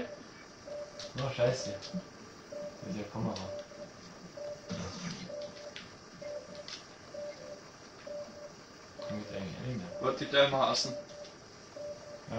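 An electronic alarm beeps in short, evenly repeating pulses.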